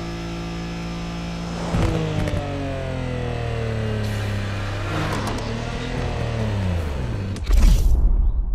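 A car engine idles and hums low as the car rolls slowly.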